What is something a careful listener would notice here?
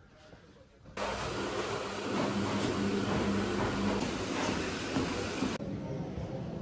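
A treadmill motor hums steadily.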